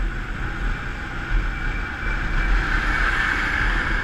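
A truck engine rumbles as it is passed.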